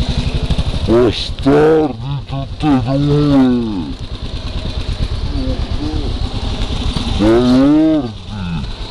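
A man calls out loudly close by.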